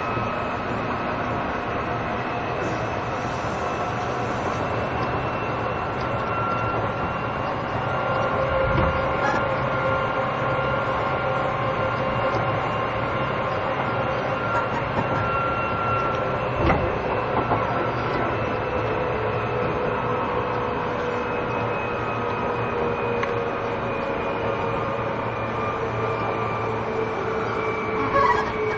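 An electric train idles with a steady hum.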